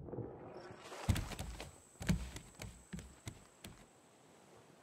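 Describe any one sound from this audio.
Heavy thuds knock on wood in quick succession.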